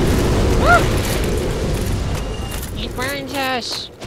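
A fireball bursts and roars.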